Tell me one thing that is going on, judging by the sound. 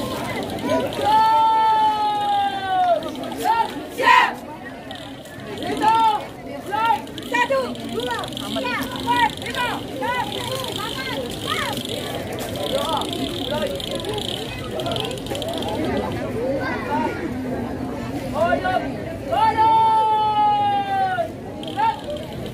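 A young woman shouts long drawn-out drill commands outdoors.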